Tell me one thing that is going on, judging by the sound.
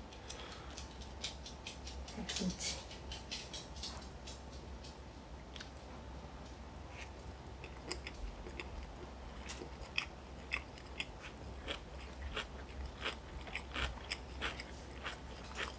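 People chew and slurp food loudly close to a microphone.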